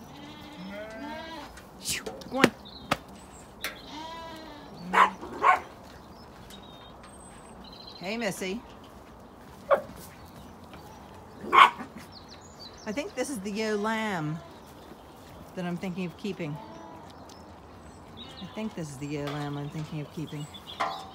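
Lambs bleat loudly nearby, again and again.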